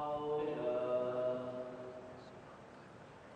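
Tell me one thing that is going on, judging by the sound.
A man chants a long call through loudspeakers in a large echoing space.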